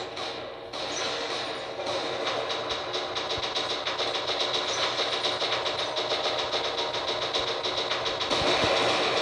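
Machine guns fire in rapid bursts.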